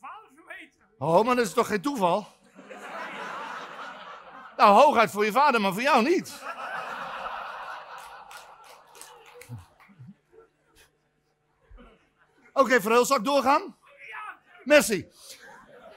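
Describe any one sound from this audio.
An elderly man speaks loudly and expressively on a stage.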